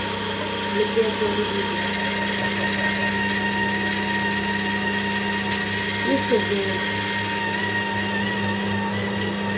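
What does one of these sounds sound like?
A juicer motor hums steadily.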